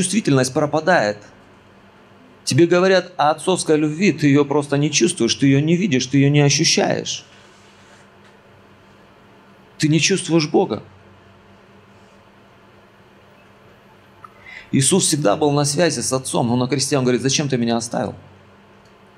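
A man speaks with animation into a microphone, heard through a loudspeaker, with long pauses.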